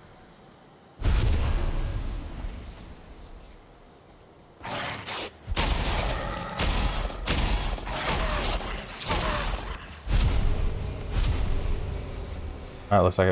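Weapon blows thud and crackle in a video game fight.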